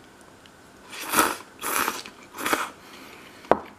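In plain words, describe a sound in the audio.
A person slurps noodles loudly.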